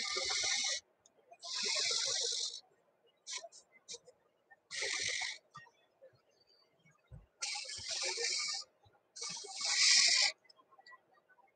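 A marker squeaks across paper in long strokes.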